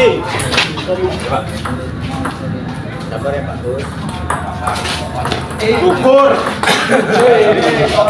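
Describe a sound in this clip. Men talk and call out nearby with animation.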